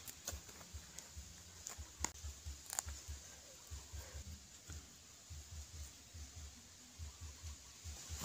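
Hands scrape and crumble dry soil.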